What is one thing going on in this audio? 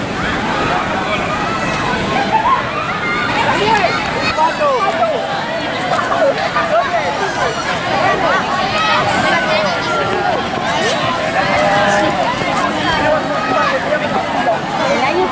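Children shout and call out.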